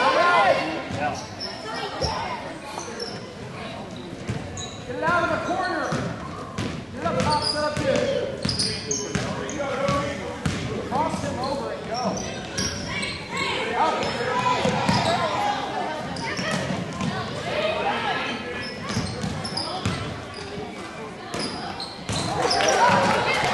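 Spectators and young players shout and call out nearby.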